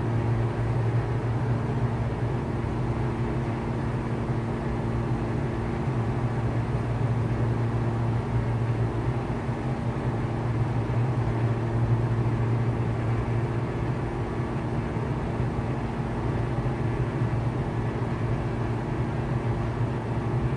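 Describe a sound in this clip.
An aircraft engine drones steadily in a small cabin.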